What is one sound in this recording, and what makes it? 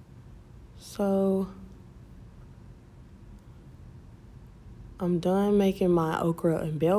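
A woman speaks close by, with animation.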